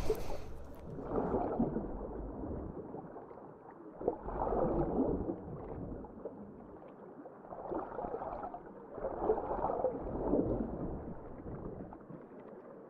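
Bubbles gurgle, muffled underwater.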